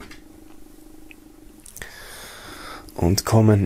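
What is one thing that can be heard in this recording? Fabric rustles softly as a hand smooths it flat.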